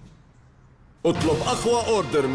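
A man speaks loudly and excitedly.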